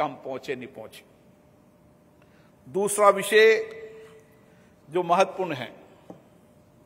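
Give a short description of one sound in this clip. A middle-aged man speaks with emphasis through a microphone in a large hall, pausing between phrases.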